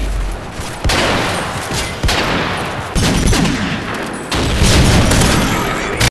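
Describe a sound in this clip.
Heavy revolver shots boom one after another, each ringing out loudly.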